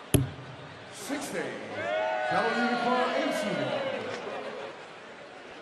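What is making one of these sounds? A large crowd cheers and sings in a big echoing hall.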